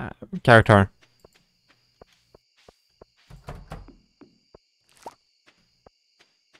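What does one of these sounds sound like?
Soft footsteps tap at an even, quick pace.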